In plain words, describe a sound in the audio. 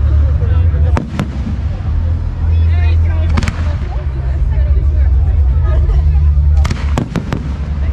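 Fireworks burst with sharp bangs and pops overhead.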